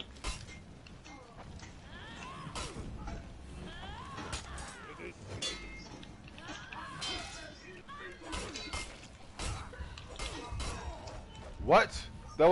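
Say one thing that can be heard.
Swords clash and ring in a fight.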